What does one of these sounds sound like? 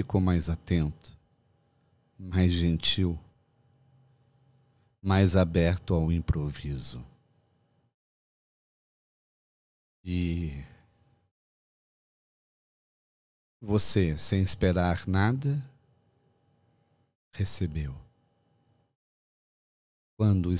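A middle-aged man speaks calmly and close into a microphone, with pauses.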